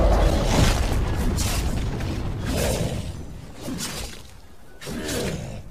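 Fighting sound effects clash and burst.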